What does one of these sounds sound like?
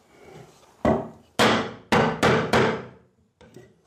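A hammer strikes a chisel into wood.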